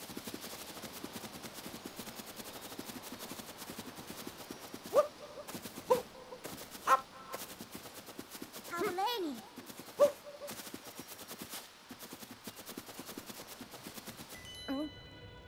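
Quick footsteps patter over grass.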